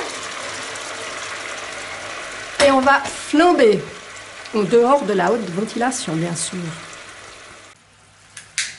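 Food sizzles steadily in a frying pan.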